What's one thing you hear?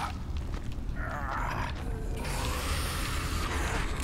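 A monster groans and snarls.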